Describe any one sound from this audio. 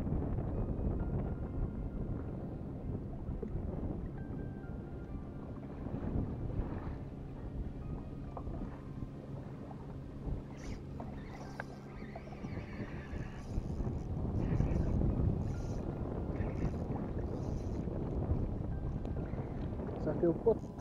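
Wind blows over open water outdoors.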